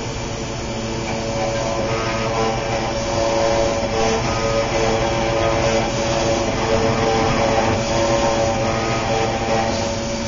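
An engraving spindle whines steadily as it cuts.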